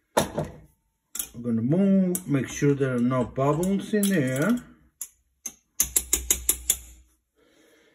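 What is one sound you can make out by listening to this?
Metal tongs clink against a glass jar.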